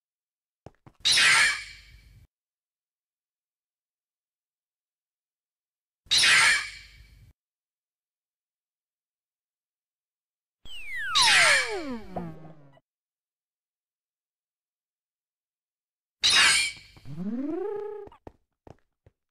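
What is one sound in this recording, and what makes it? A video game creature spawns with a loud, short burst of noise, several times.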